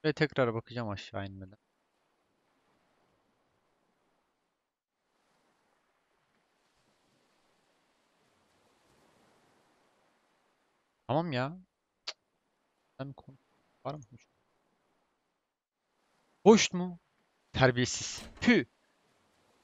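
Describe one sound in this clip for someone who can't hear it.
A young man speaks animatedly into a close headset microphone, in short bursts.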